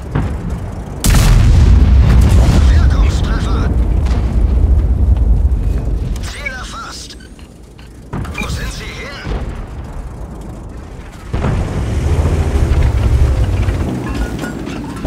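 A tank engine rumbles deeply.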